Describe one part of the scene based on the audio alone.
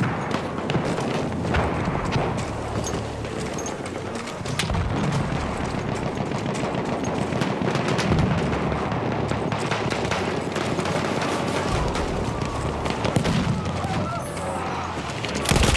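Gunshots crack and boom in the distance.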